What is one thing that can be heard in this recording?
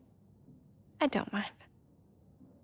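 A woman speaks warmly, close by.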